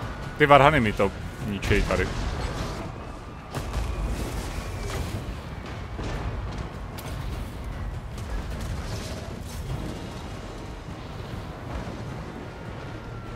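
A distant battle rumbles steadily with clashing weapons and shouts.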